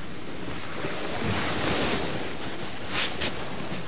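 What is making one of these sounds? Fabric rustles as a jacket is put on.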